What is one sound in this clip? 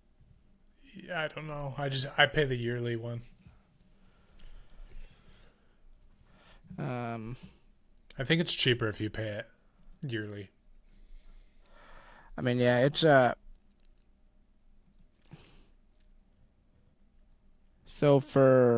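A young man speaks calmly into a microphone, heard close up.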